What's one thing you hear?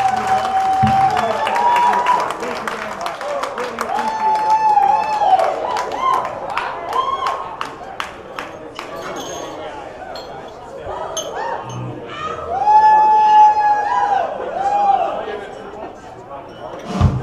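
Audience members whistle loudly.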